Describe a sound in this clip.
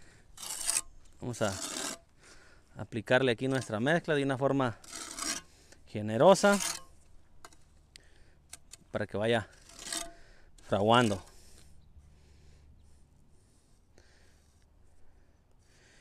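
A metal trowel scrapes wet mortar against concrete blocks.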